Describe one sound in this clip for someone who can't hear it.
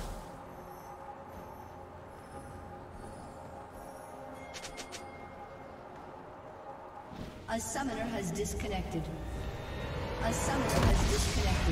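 Fantasy game battle effects whoosh and crackle.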